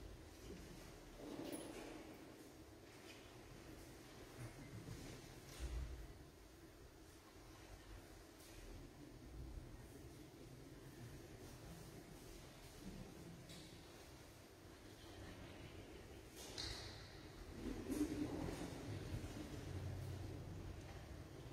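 A man speaks quietly into a microphone in a large echoing hall.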